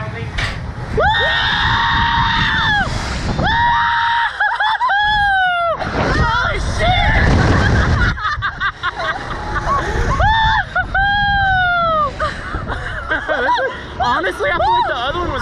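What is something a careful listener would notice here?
A young woman screams loudly and close by.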